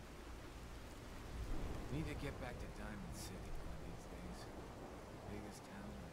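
Rain falls steadily outdoors.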